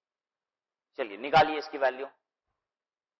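A man speaks briefly into a clip-on microphone.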